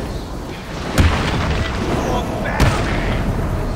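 Heavy punches land with loud thuds.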